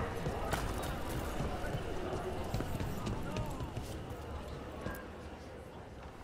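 Footsteps tap on stone at a walking pace.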